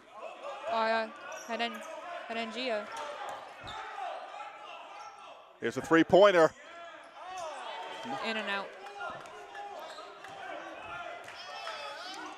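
A basketball thumps as it is dribbled on a wooden floor.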